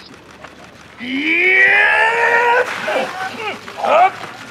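A man lets out a long loud cry outdoors.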